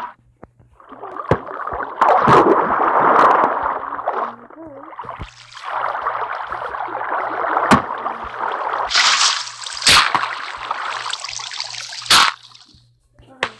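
Water splashes and flows steadily.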